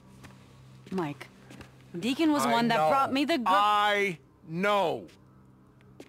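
A woman shouts urgently close by.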